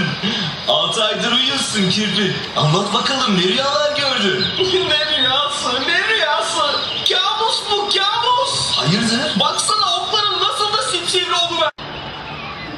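A young woman speaks loudly and with expression.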